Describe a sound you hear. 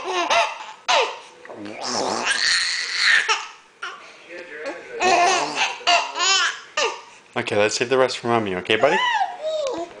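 A baby squeals and babbles happily up close.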